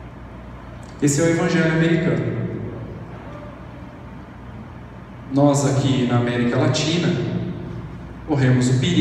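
A man speaks calmly into a microphone, heard through loudspeakers in a large echoing room, with pauses between phrases.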